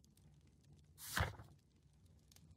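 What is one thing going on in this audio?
A page flips over with a quick papery whoosh.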